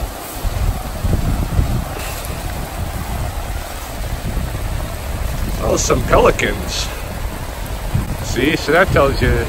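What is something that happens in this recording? River water rushes steadily over rapids.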